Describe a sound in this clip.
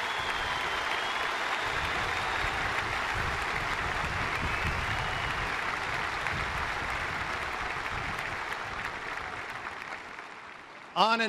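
A large crowd claps and cheers loudly, then fades.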